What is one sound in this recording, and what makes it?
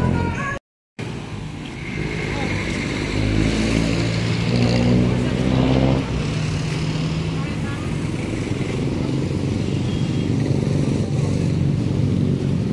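Traffic rumbles along a nearby street.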